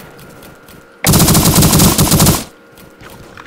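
Rapid automatic gunfire rattles loudly in a burst.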